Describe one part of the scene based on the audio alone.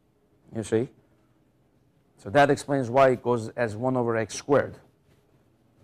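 A man speaks clearly to a room, in a lecturing tone.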